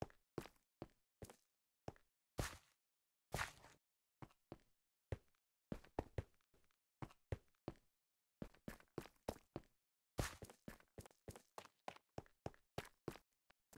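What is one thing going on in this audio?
Footsteps tread on stone and gravel in a regular walking rhythm.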